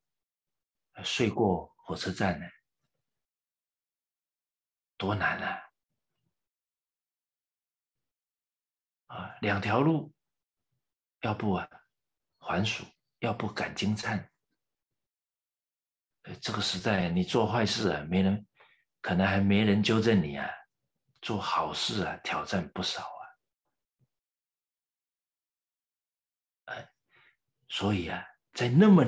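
A middle-aged man speaks calmly into a microphone, in bursts with long pauses.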